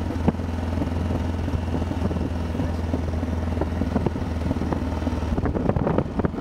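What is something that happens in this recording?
A motorcycle engine hums as the bike rides along a road.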